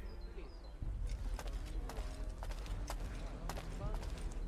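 Footsteps crunch on dirt nearby.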